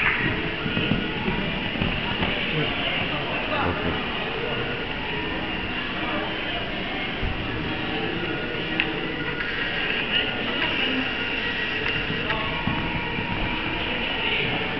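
A horse's hooves thud on soft sand as it canters.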